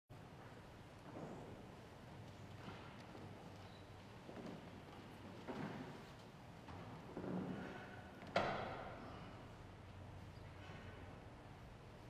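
A man speaks slowly through a microphone in a large echoing hall.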